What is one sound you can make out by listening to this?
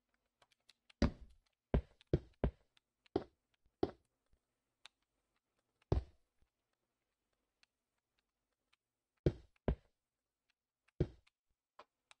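Blocks are set down with short, dull knocks, one after another.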